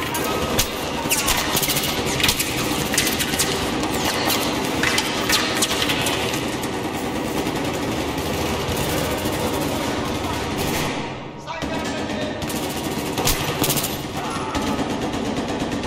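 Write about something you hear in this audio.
Rapid gunshots crack and echo in a hard, echoing space.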